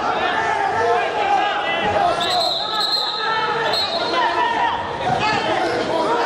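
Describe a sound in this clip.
A large crowd shouts and cheers in a big echoing arena.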